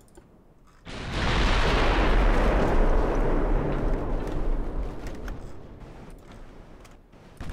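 Heavy ship guns fire with a deep, rumbling boom that slowly fades.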